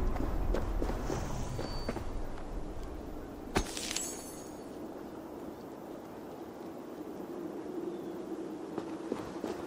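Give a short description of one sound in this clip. Footsteps scuff softly on stone.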